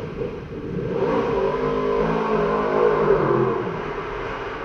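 A motorcycle engine revs up and winds back down.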